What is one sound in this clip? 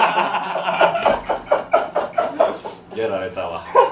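Two young men laugh loudly close by.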